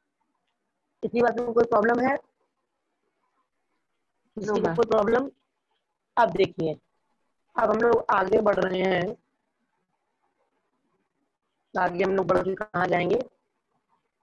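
A woman speaks clearly and calmly close to a microphone, in short bursts with pauses.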